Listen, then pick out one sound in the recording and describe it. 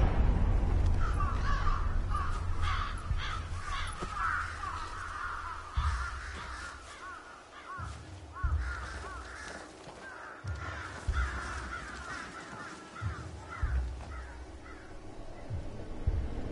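Crows caw and chatter from perches overhead.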